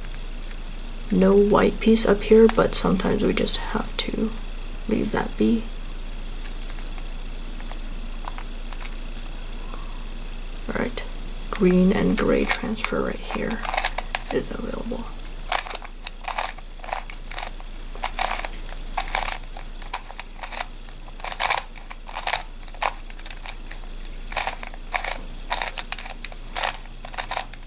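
Plastic puzzle pieces click and clack as a puzzle is turned quickly by hand.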